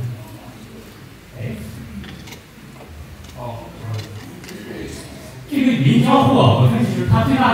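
A man speaks through a microphone in a room with some echo.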